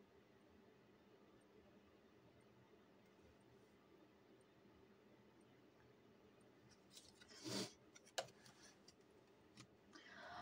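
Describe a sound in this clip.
Playing cards rustle softly in a hand.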